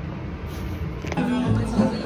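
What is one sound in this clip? A young man laughs softly close by.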